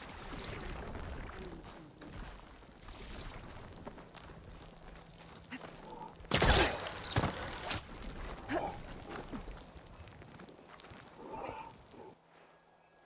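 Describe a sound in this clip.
Footsteps rustle through undergrowth.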